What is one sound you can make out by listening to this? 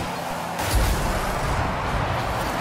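A video game explosion booms loudly.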